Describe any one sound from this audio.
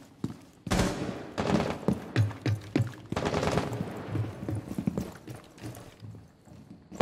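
Footsteps thump up stairs.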